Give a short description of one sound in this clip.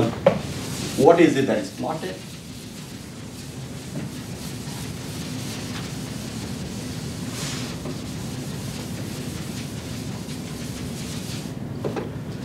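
An eraser rubs across a chalkboard.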